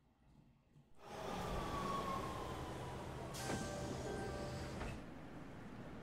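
A train rumbles past a station platform.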